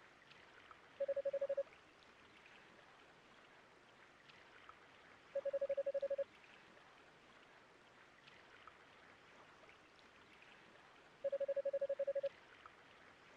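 Rapid, short electronic beeps chatter in brief bursts.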